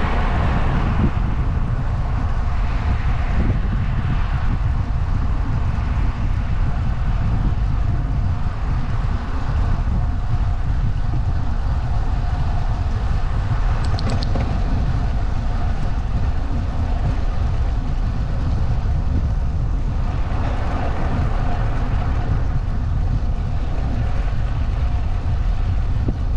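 Strong wind buffets the microphone throughout.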